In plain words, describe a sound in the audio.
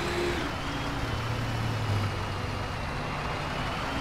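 Bus tyres thump over a speed bump.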